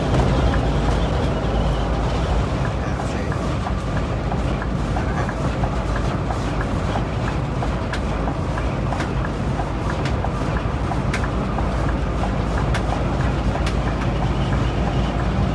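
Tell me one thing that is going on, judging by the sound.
Tyres roll on a smooth road with a steady rumble.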